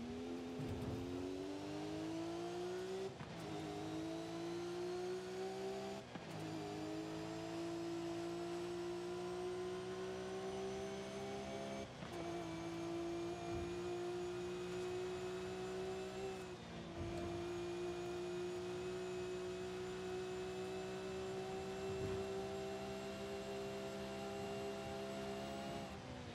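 A racing car engine roars loudly, rising in pitch and dropping briefly with each gear change.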